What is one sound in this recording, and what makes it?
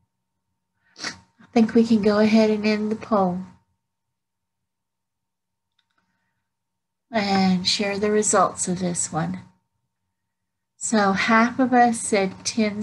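A woman speaks calmly through an online call microphone, in short phrases with pauses.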